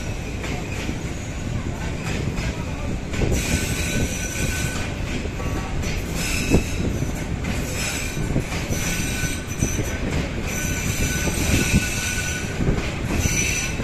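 A freight train rumbles and clatters past on the rails close by.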